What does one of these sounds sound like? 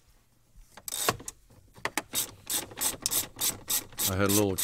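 A socket wrench ratchets with quick, even clicks.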